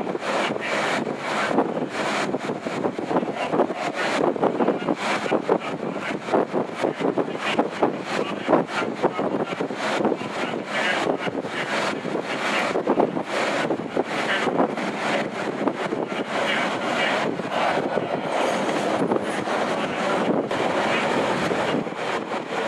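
Wind rushes past an open carriage.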